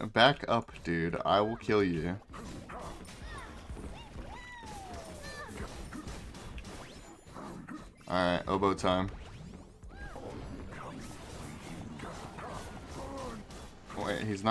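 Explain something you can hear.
Swords clash and spells burst with loud whooshes in a fast fight.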